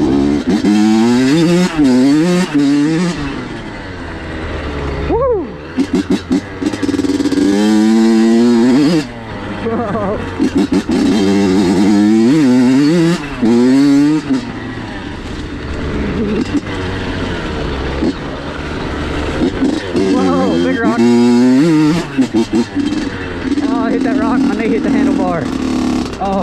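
Tyres crunch over a dirt trail.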